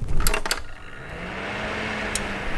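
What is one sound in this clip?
Computer fans spin up and hum steadily.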